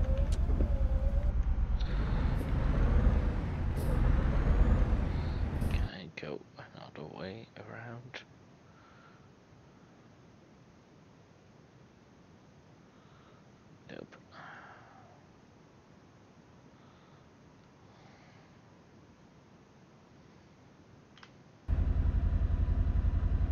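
A heavy truck's diesel engine idles.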